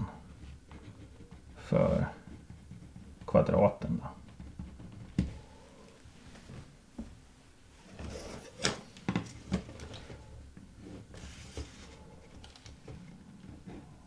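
A pen scratches on paper as someone writes.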